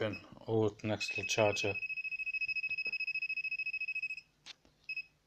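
An electronic detector beeps rapidly with a high, steady tone.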